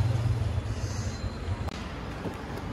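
Street traffic rumbles outdoors.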